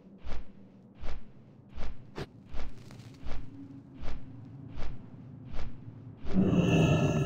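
Large wings flap in a steady, even rhythm.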